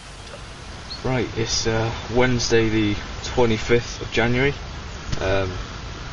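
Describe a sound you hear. A teenage boy talks calmly and close by.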